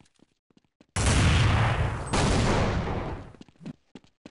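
A pistol fires several sharp shots close by.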